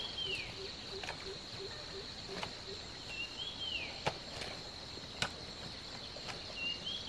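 A hoe strikes the soil with dull thuds.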